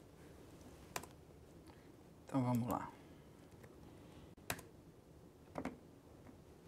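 Keys tap on a laptop keyboard.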